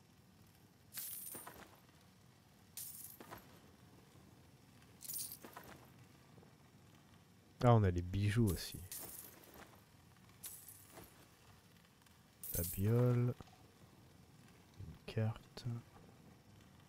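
Short menu sounds chime now and then.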